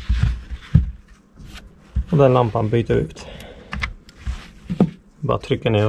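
Small plastic parts click and rattle as they are handled.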